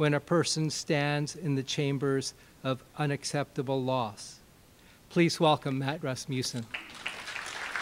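An older man reads aloud calmly through a microphone in a large hall.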